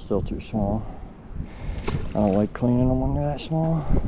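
A small fish splashes into the water.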